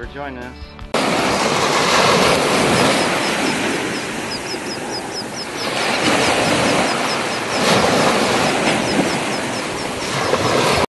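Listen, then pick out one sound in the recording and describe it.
Water rushes and churns in a loud steady wash.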